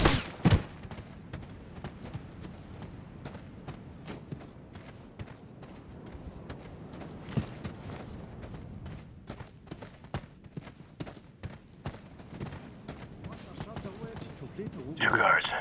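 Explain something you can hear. Boots step steadily on gravel.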